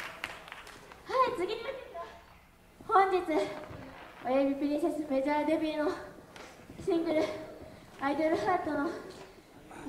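A young woman talks with animation through a microphone over a loudspeaker.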